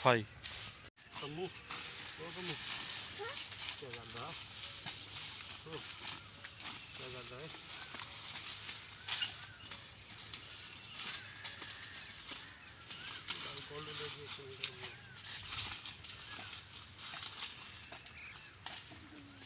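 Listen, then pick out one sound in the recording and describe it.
Dry leaves rustle and crackle under a man's hands.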